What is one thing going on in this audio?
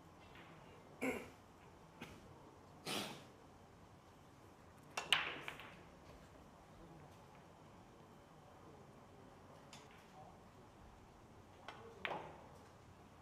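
A pool cue strikes the cue ball with a sharp tap.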